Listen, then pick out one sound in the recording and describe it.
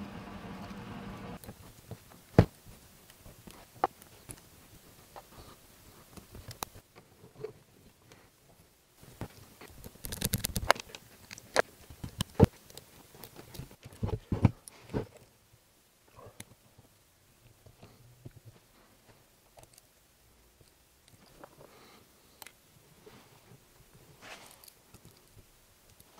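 A small screwdriver scrapes and clicks on metal screws.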